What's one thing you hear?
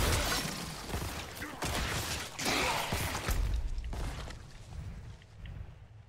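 Loud game sound effects crash and rumble.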